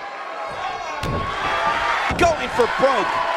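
A wrestler's body thuds onto the mat.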